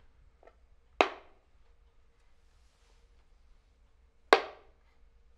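A chess piece taps onto a wooden board.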